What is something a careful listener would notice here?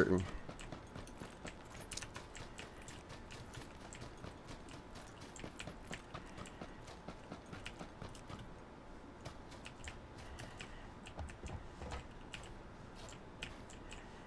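Footsteps run quickly through grass and dirt.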